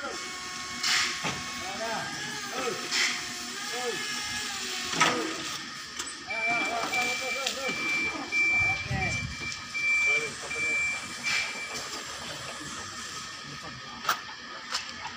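Wooden pallets knock and clatter.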